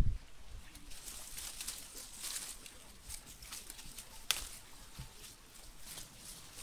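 Leaves rustle as a man picks fruit from a tree.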